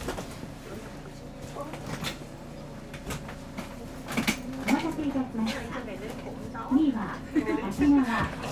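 A train's electric motor whines and rises in pitch as the train pulls away.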